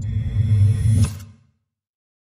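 Clock parts burst apart with a sharp metallic crash.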